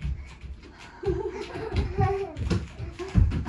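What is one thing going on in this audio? A young child's voice calls out nearby in a high pitch.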